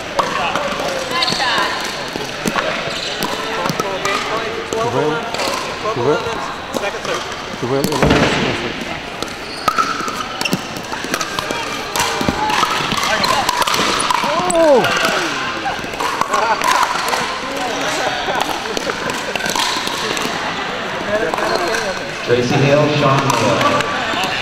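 Voices of men and women chatter and call out across an echoing hall.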